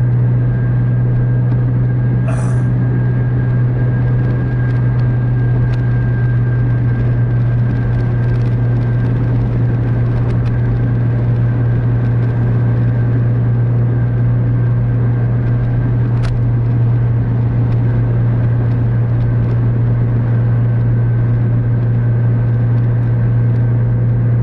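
A car engine hums steadily at highway speed.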